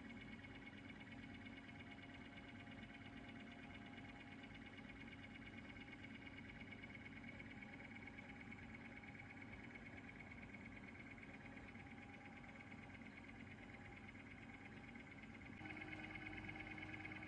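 A disc player's motor whirs and hums steadily.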